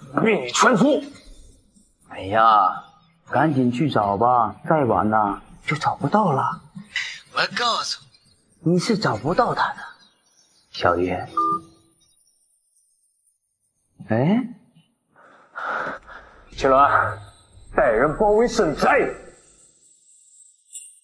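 A young man speaks sternly into a phone.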